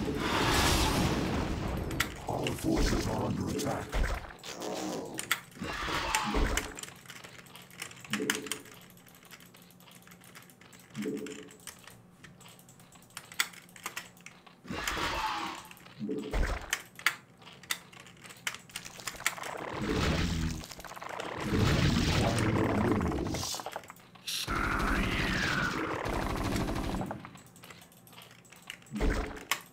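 A man speaks with animation close to a microphone, in bursts with pauses.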